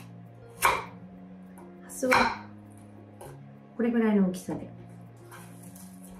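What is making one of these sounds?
A knife chops through food on a wooden board.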